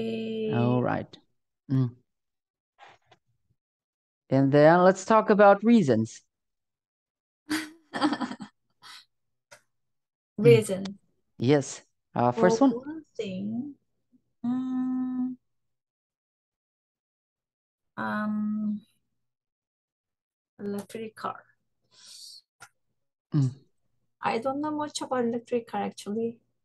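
A young woman speaks with animation over an online call, in short bursts with pauses.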